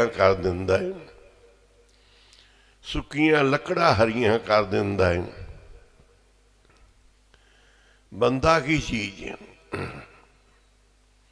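An elderly man sings slowly and with feeling into a microphone, with long pauses.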